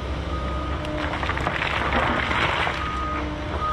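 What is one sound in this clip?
An excavator bucket scrapes and grinds through rocky soil.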